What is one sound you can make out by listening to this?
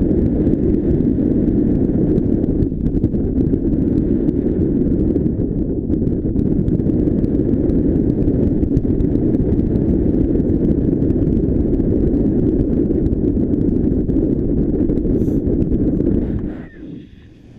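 Strong wind rushes and buffets against the microphone outdoors.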